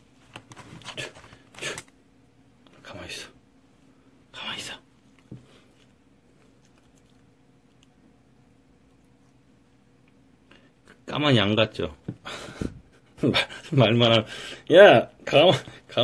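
A young man talks calmly and close by, in short bursts.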